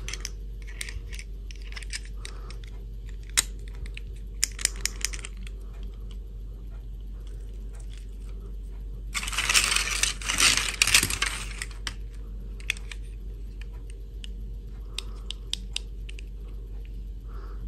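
Small plastic toys click and tap as hands handle them.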